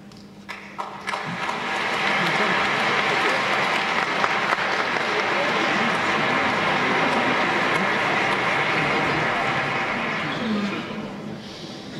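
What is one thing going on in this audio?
A large crowd applauds steadily, then the applause fades.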